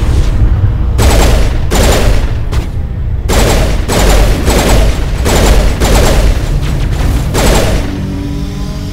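Energy weapons fire in rapid, loud bursts.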